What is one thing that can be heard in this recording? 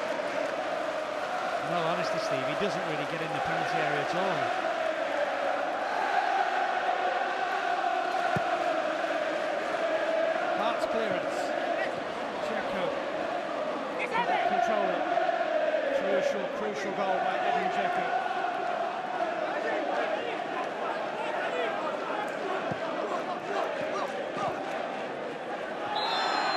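A large stadium crowd sings and chants loudly throughout.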